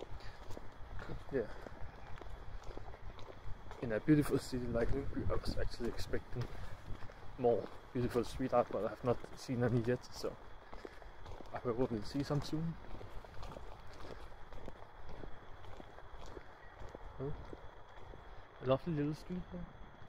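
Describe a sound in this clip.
A young man talks calmly and close by, outdoors.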